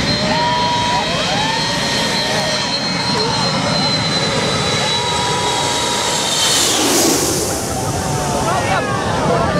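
A crowd of people cheers and shouts close by.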